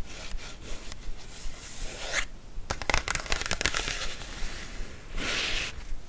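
Long fingernails tap and scratch on glossy paper.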